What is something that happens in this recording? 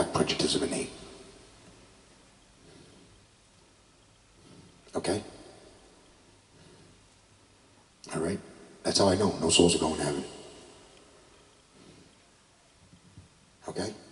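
A middle-aged man speaks into a microphone in short bursts, with long pauses between.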